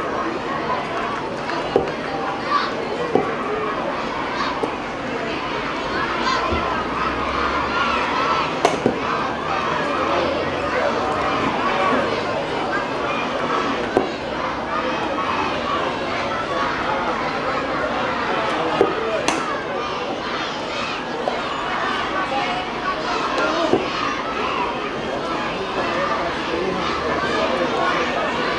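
A large crowd of children and adults chatters outdoors.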